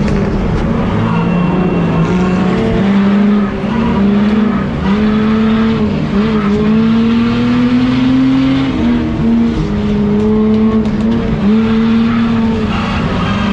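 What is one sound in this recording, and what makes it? A stripped-out race car's engine revs up and shifts gears, heard from inside the car.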